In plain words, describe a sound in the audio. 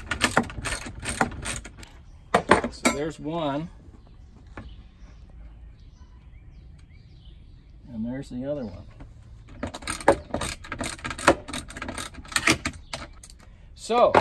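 Metal drawer slides click and rattle as they are handled.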